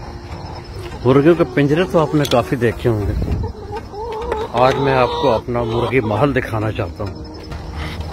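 Hens cluck and murmur close by.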